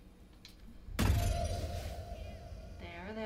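A magic spell bursts with a bright shimmering whoosh.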